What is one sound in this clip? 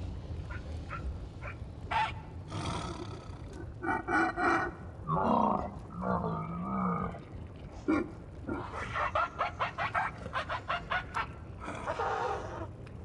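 Lava rumbles low and steadily.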